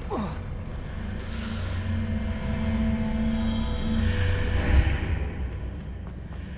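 A deep magical rumble swells and fades.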